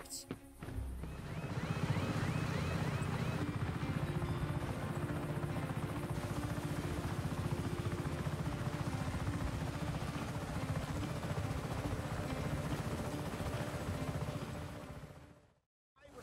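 A helicopter's rotor thumps and its engine roars steadily.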